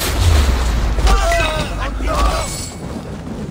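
A creature shrieks in pain.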